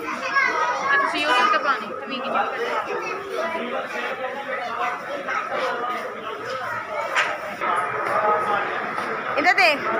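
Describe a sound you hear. Young boys talk excitedly close by.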